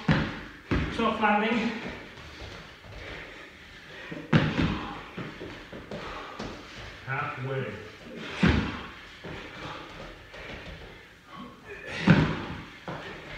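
Feet thud on a padded floor as men jump and land.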